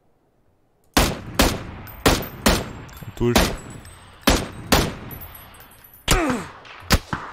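A rifle fires loud single shots in quick succession.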